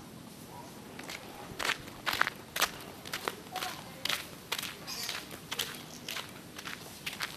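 Footsteps crunch on a gravel road at a walking pace.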